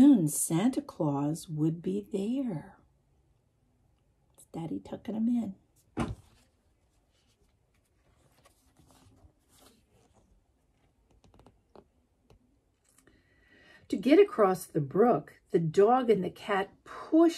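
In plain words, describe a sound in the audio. An elderly woman reads aloud expressively, close to a microphone.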